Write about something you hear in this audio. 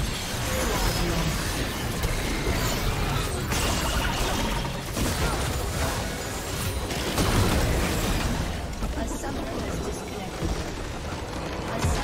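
Game spell effects and fighting clash loudly and rapidly.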